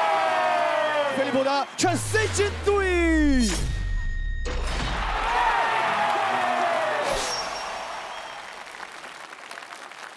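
A group of young men cheer and shout excitedly.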